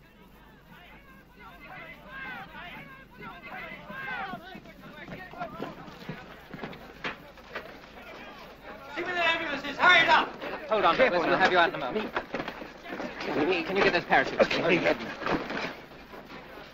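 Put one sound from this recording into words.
Men shout urgently outdoors.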